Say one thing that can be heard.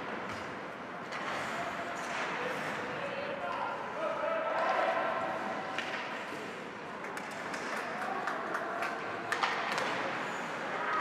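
A crowd murmurs and shouts in a large echoing rink.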